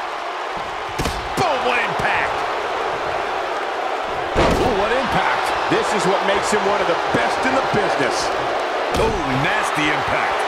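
Heavy thuds ring out as wrestlers hit the mat.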